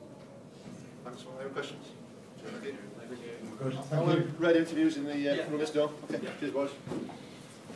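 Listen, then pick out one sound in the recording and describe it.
A man speaks calmly into a microphone nearby.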